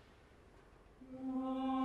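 A choir begins singing a full, sustained chord in a large echoing hall.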